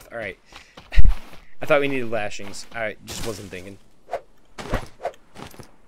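A stone axe chops through a leafy plant.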